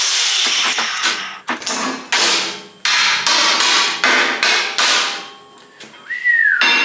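Metal tubing clanks and knocks as it is handled.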